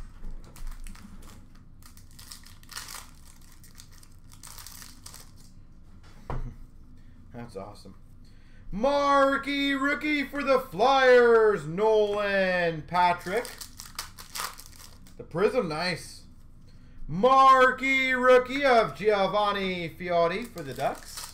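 Card packs are set down on a counter with light taps.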